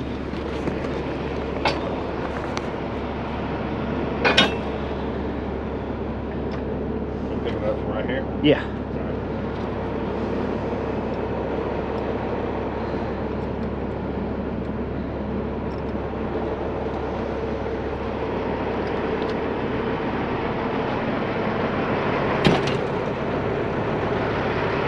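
A truck engine idles steadily nearby.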